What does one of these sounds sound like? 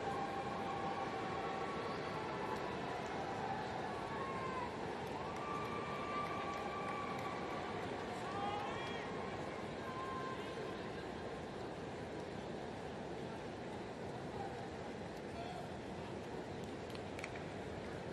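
A large crowd murmurs and cheers steadily in an open stadium.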